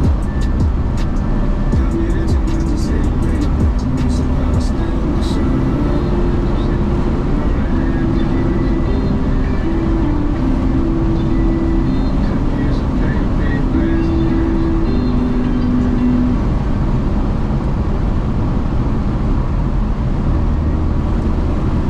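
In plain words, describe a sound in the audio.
Tyres roar on a road surface.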